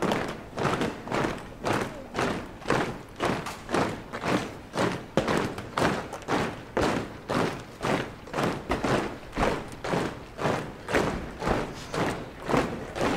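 Many boots march in step on pavement, with sharp regular beats outdoors.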